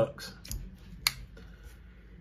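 A folding knife blade clicks open.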